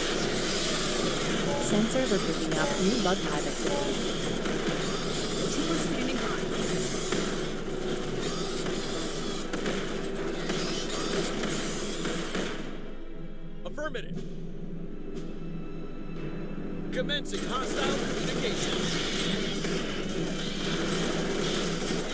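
A flamethrower roars steadily.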